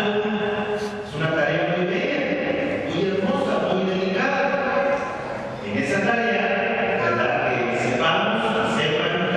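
A man speaks steadily through a microphone in a large echoing room.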